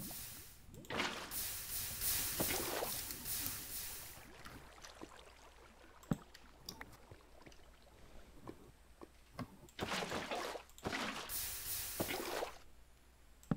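Water pours and splashes in short rushing bursts.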